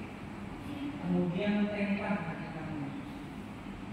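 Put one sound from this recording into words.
A man calls out instructions in an echoing room.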